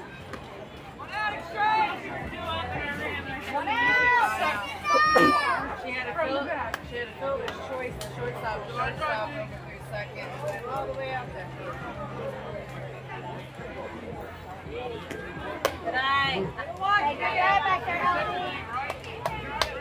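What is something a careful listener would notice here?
Children and adults cheer and shout from nearby outdoors.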